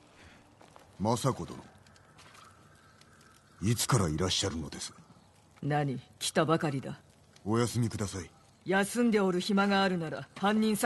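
A man speaks calmly and gravely.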